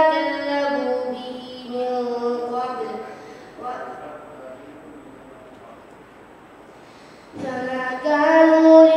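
A boy recites in a melodic chanting voice through a microphone, heard over a loudspeaker.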